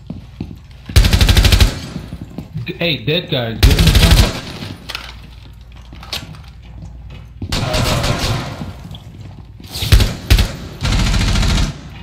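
Rifle shots fire in rapid bursts, loud and close.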